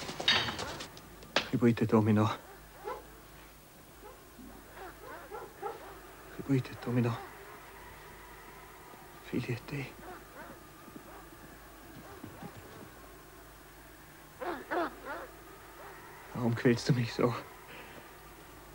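A man speaks slowly in a low, quiet voice close by.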